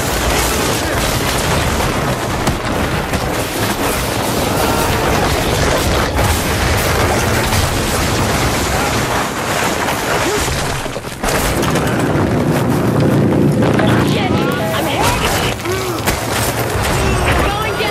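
A building collapses with a deep, loud rumble.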